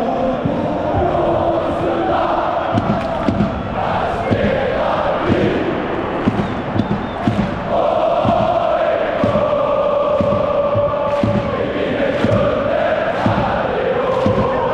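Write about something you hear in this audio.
A large crowd of fans chants loudly in unison in a big echoing stadium.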